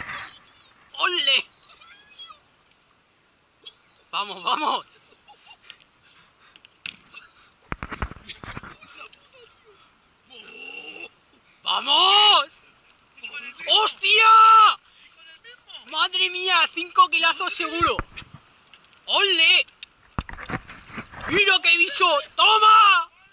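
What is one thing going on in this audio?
A man shouts with excitement close by, outdoors on open water.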